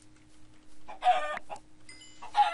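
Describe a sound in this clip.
A pig squeals as it is struck.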